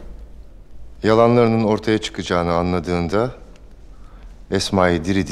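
A man speaks calmly and gravely, close by.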